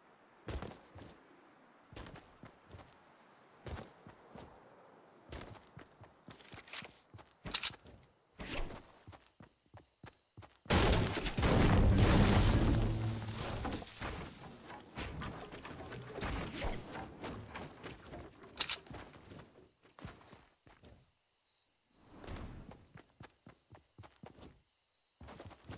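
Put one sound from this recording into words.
Footsteps patter quickly on grass and pavement.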